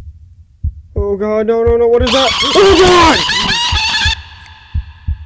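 A young man screams in fright into a headset microphone.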